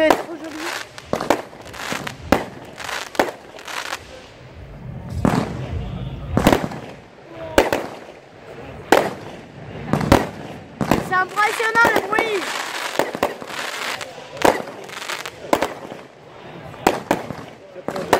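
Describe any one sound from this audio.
Fireworks bang and crackle nearby, one burst after another.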